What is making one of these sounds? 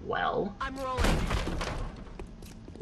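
A door is kicked in with a loud crash.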